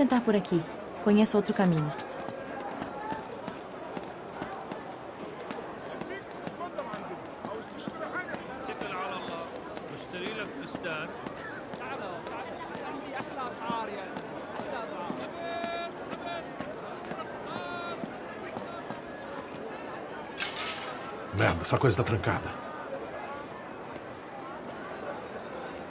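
A market crowd murmurs and chatters all around.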